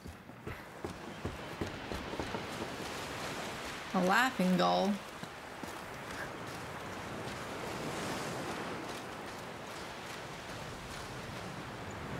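Sea waves wash gently on a shore.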